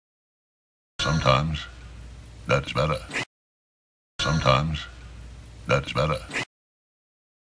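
A middle-aged man speaks in short, excited bursts.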